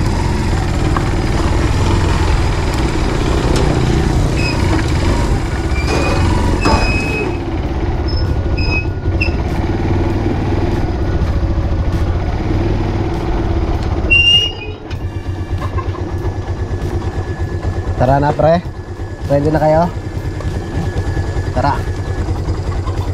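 A motorcycle engine runs close by with a steady low rumble.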